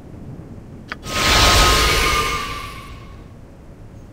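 A magical shimmer swells and fades.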